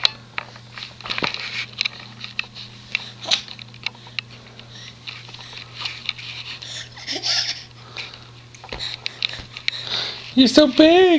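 A baby babbles softly close by.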